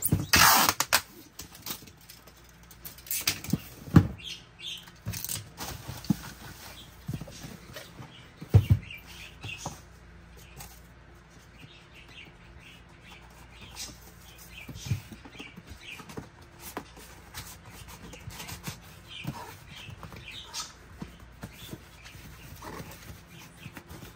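Cardboard rustles and thumps as a box is handled and folded.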